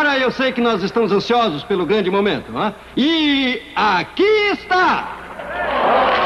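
A man speaks with animation through a loudspeaker in a large hall.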